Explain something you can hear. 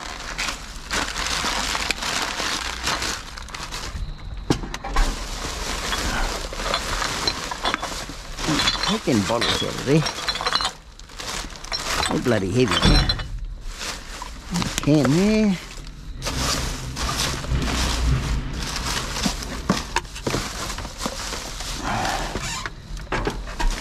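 Plastic bags rustle and crinkle close by.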